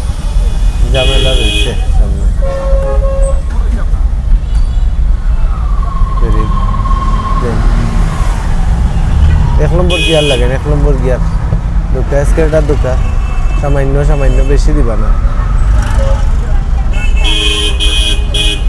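Vehicle horns honk nearby in busy street traffic.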